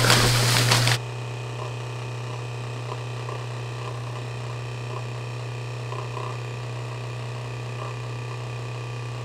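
A massage gun buzzes with a steady low hum.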